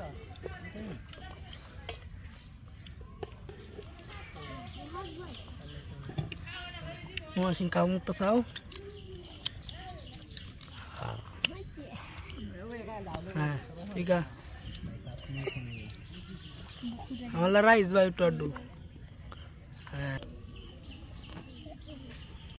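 Young boys talk with animation close by, outdoors.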